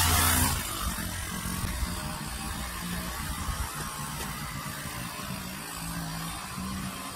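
A string trimmer engine buzzes steadily close by.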